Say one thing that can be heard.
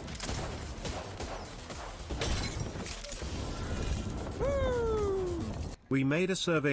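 Gunshots crack rapidly in a video game.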